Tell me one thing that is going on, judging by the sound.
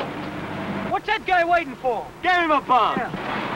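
A young man talks inside a car.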